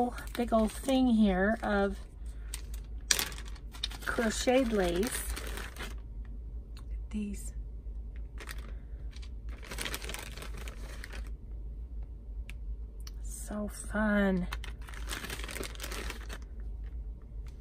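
A plastic bag crinkles and rustles as it is handled.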